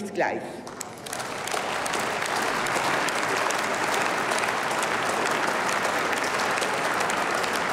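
A large crowd murmurs and shuffles in a big echoing hall.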